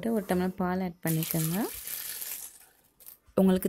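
Milk pours and splashes into a jug.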